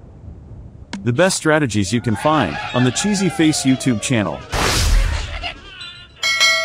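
Wooden blocks crash and clatter.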